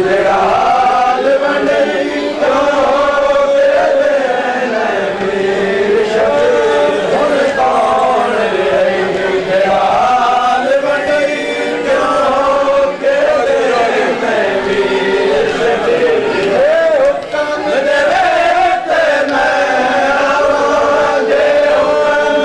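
A man sings a slow, mournful chant through a loudspeaker.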